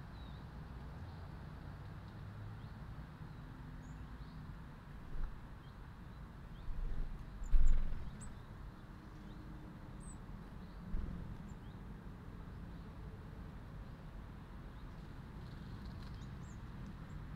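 Small birds chirp faintly outdoors.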